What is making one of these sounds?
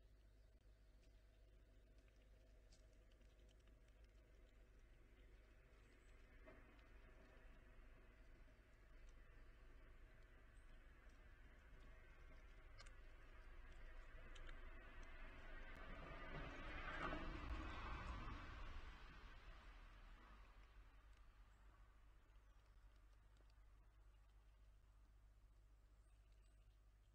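A squirrel nibbles seeds with soft crunching.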